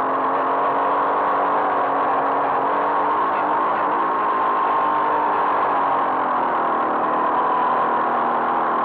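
A motorcycle engine drones loudly up close, its pitch shifting as the rider works the throttle.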